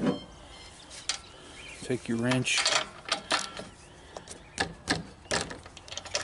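A ratchet wrench clicks as it turns.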